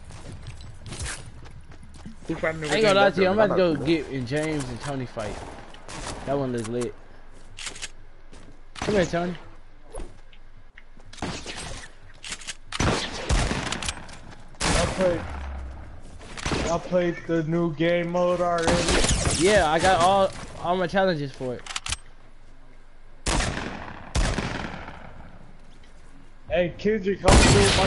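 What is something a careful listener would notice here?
Gunshots crack in short, sharp bursts.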